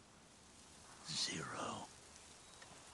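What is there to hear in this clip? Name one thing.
A man speaks a single word calmly.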